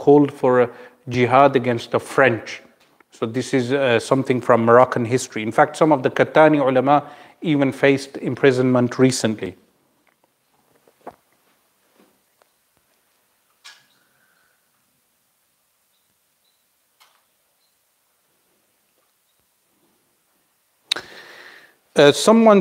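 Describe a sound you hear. A man speaks calmly into a microphone in a quiet echoing room.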